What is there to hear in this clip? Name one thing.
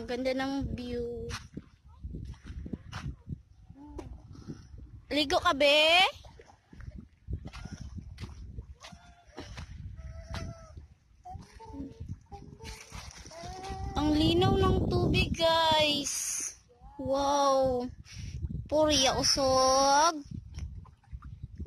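A young child babbles and squeals close by.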